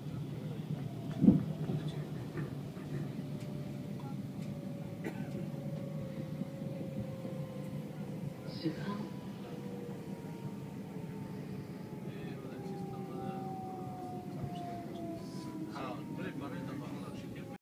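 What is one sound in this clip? Train brakes whine with a slowly falling pitch as the train slows.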